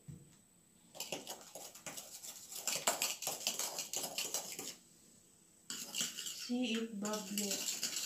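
A spoon stirs and clinks quickly in a glass.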